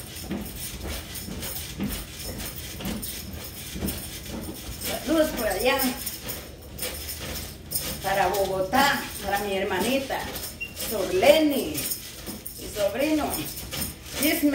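A mini trampoline thumps and creaks with steady bouncing.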